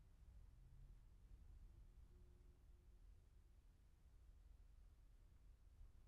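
A car drives by on a road in the distance.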